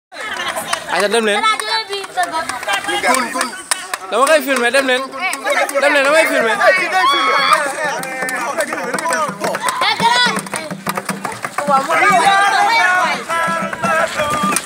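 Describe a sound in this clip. A group of young women and men sing and chant loudly together outdoors, close by.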